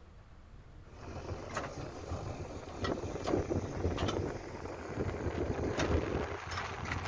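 An excavator engine rumbles as it digs soil.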